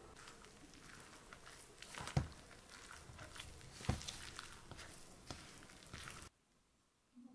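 A wooden spoon stirs flour and dough in a metal bowl, scraping and knocking against its side.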